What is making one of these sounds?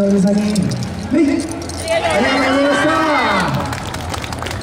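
A group of young women shout together in loud, drawn-out calls.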